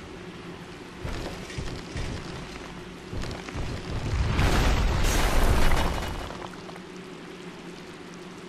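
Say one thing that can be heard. Heavy armoured footsteps thud on wooden planks.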